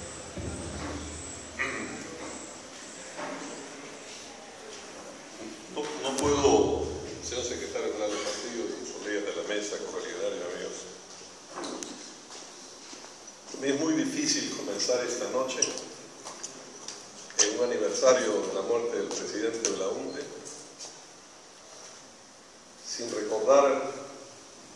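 A man speaks through a microphone and loudspeaker, echoing in a large hall.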